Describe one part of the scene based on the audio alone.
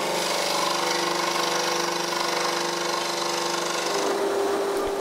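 A scroll saw buzzes steadily.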